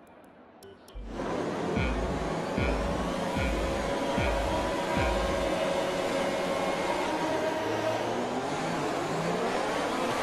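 Formula One car engines rev high and scream away from a race start.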